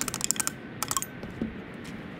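Metal parts click and rattle.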